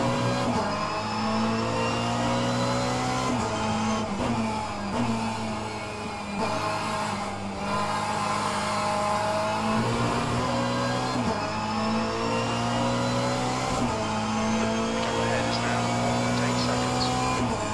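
A racing car engine roars loudly, revving up and dropping back with each gear change.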